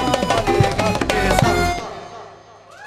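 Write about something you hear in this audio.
A harmonium plays a melody.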